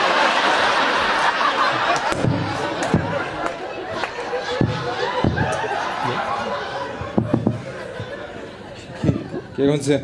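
An audience laughs and chatters loudly.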